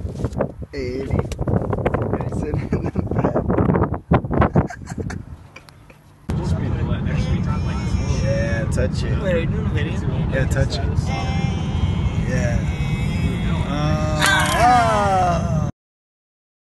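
A man talks casually inside a car.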